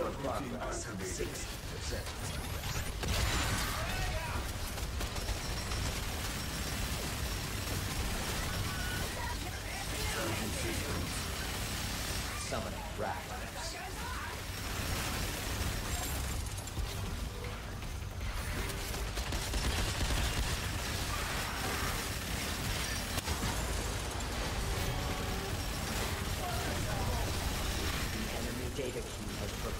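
Gunfire and explosions boom and crackle throughout.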